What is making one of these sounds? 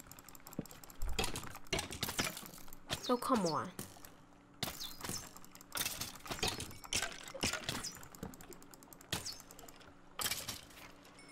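A sword strikes a creature with quick, sharp hits.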